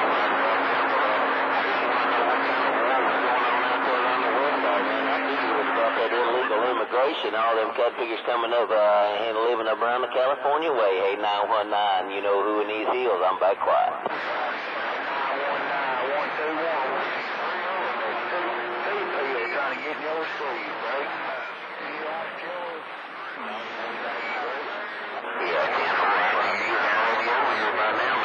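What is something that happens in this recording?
A radio receiver hisses and crackles with static.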